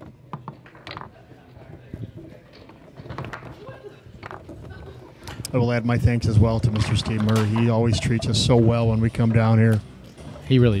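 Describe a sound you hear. Foosball rods clack and a ball knocks against the table.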